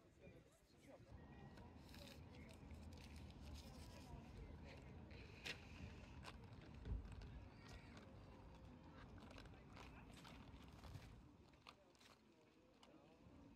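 A plastic straw scrapes and rattles inside a cup of ice and drink.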